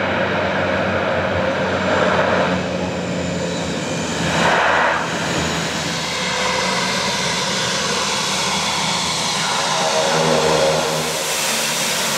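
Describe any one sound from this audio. A small propeller plane roars loudly as it lands and taxis.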